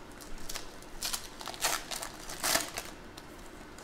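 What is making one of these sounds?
Foil wrapping crinkles and tears open.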